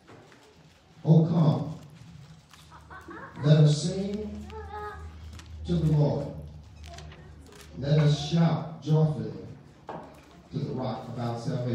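An elderly man speaks slowly and solemnly into a microphone in an echoing hall.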